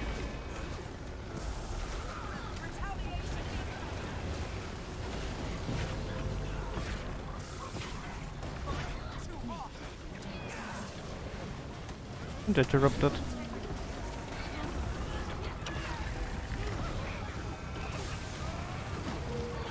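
Game spell blasts and impacts crackle and boom.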